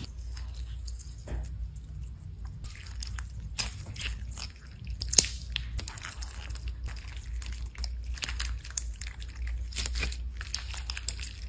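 Soft, wet gel beads squish and pop as hands squeeze them.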